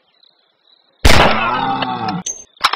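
A rifle fires a single loud shot that rings out and fades.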